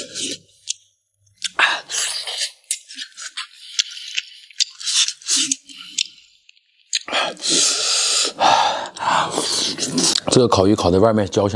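Chopsticks click against food.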